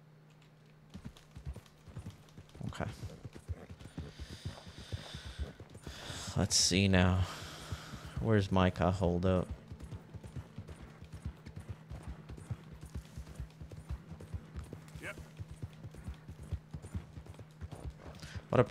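Horse hooves clop steadily along a dirt path.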